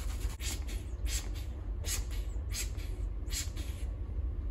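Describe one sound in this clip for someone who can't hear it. Scissors snip through hair several times.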